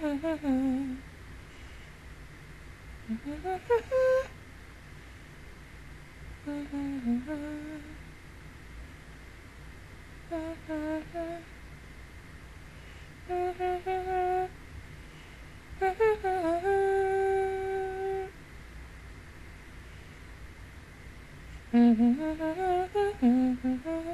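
A young woman sings softly in short phrases, close to a microphone.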